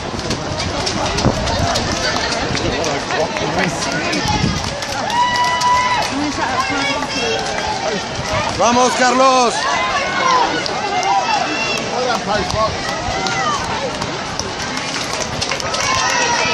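A crowd of spectators cheers and shouts encouragement outdoors.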